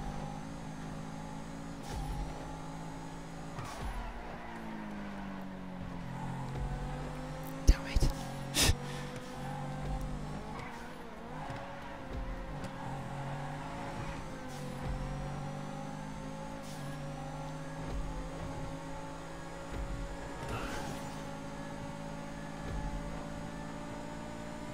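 A sports car engine races at speed, shifting gears.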